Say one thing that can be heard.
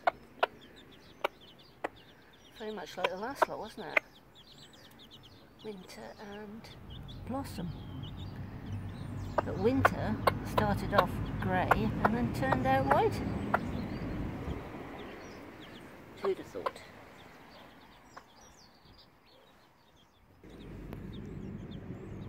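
A hen clucks softly.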